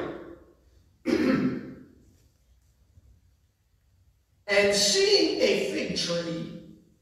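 A man speaks through a microphone and loudspeakers in an echoing hall, reading out slowly with pauses.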